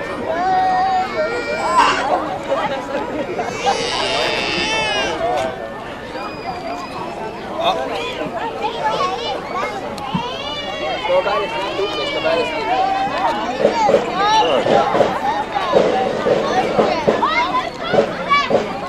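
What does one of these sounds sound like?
Young girls shout and cheer in high voices.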